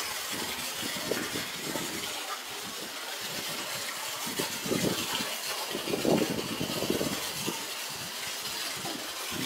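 A stream of water splashes steadily into a pool.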